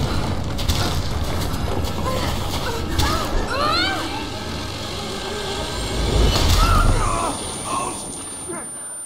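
Wind howls hard through open mountains.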